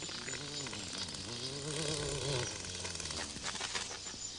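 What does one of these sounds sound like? Small insects buzz as they fly about.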